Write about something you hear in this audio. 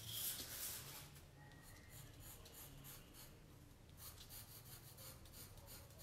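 A pencil scratches lightly across paper in short strokes.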